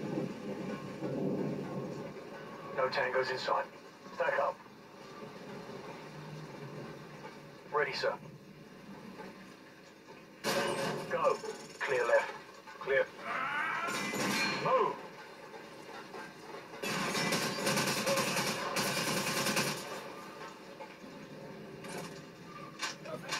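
Video game sound effects play loudly from a television loudspeaker.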